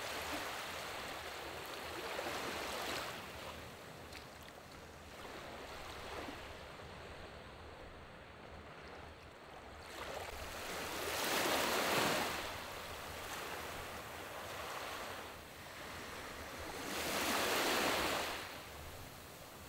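Small waves wash onto a sandy shore in gentle surges.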